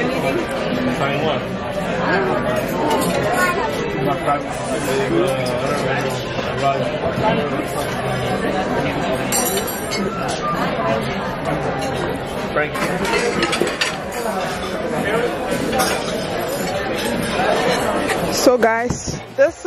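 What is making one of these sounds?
A crowd of people chatters in a large, echoing room.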